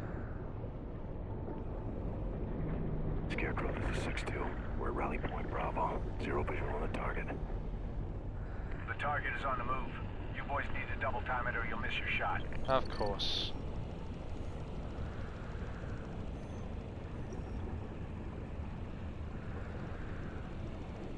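Deep water rumbles steadily all around, muffled as if heard underwater.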